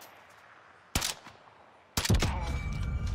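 A sniper rifle fires with a loud crack.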